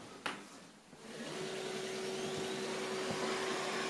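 A robot vacuum cleaner hums steadily.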